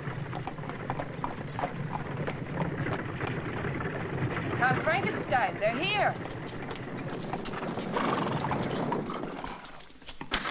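Horses' hooves clop on the ground.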